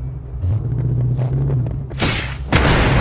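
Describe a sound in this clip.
A car engine rumbles and revs.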